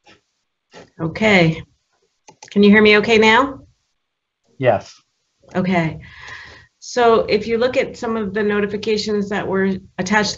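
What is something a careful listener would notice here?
An adult speaks calmly over an online call.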